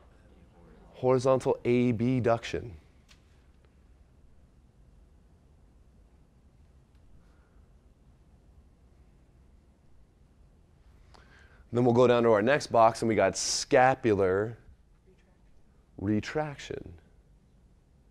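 A young man speaks clearly to a group in a room, with long pauses.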